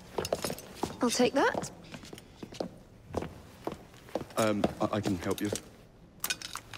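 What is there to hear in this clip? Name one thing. A young woman speaks firmly and close by.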